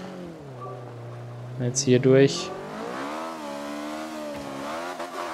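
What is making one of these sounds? A racing car engine drones and revs up and down.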